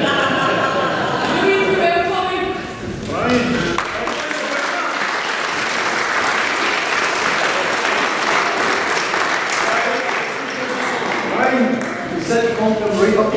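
A flute band plays a lively tune.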